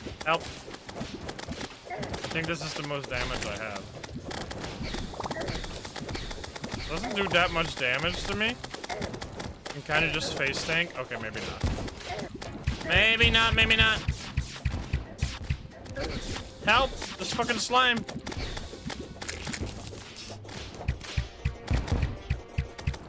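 Video game battle effects pop and crackle rapidly.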